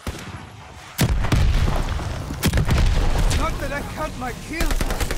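Explosions boom with a deep rumble.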